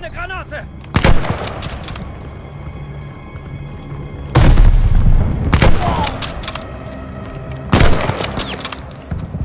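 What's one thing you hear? A rifle fires loud single shots with a booming echo.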